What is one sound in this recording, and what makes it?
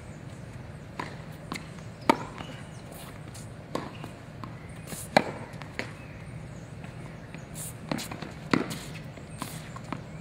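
Tennis rackets strike a ball back and forth in a rally.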